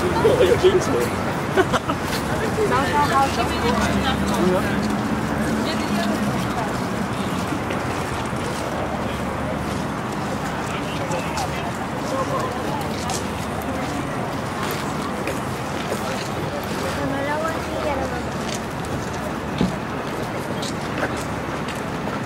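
Voices of men and women passing by chatter nearby outdoors.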